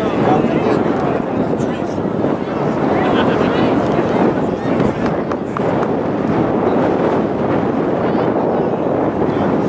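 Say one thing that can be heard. A crowd of adults and children chatters and calls out at a distance outdoors.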